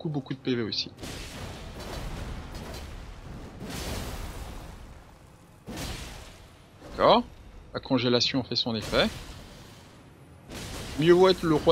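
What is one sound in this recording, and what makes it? A sword swings and strikes armour with metallic clangs.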